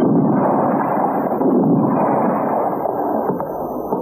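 A rifle fires a shot.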